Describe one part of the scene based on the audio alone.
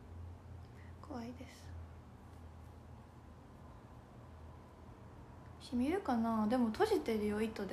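A young woman speaks softly and close by, with short pauses.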